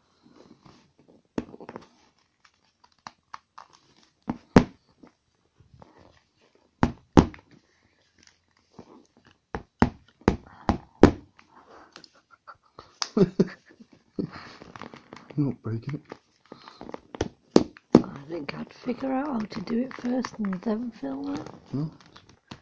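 Hands rub and rustle against plastic.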